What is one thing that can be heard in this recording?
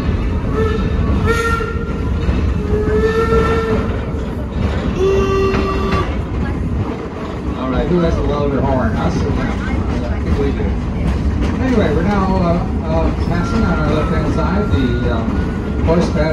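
A tram engine rumbles steadily.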